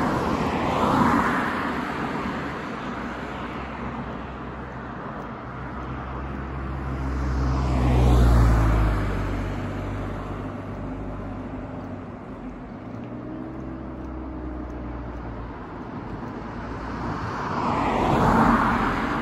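Tyres hum steadily on a road from a moving car.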